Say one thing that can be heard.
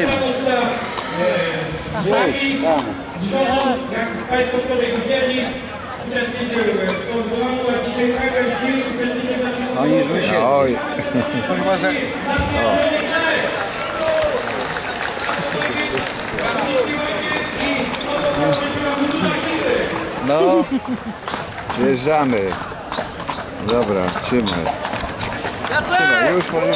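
Horses' hooves clop on paving as a horse-drawn carriage moves along.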